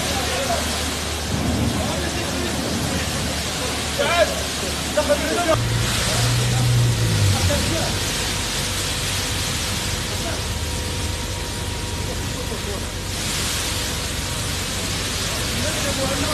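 A large fire roars steadily.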